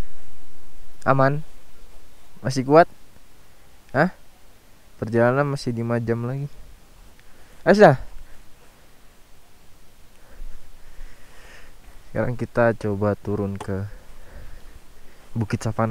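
A man talks casually close to the microphone.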